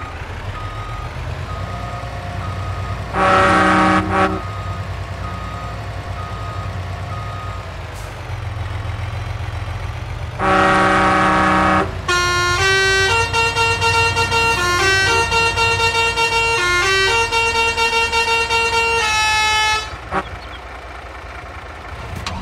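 A diesel truck engine rumbles as the truck drives.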